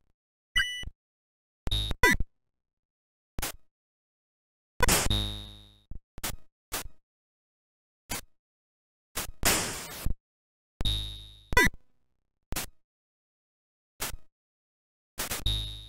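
Short electronic beeps and bleeps from a retro video game ring out again and again.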